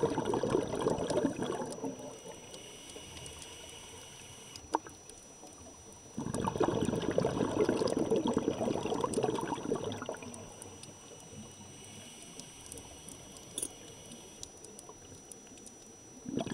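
Water murmurs softly all around, heard from underwater.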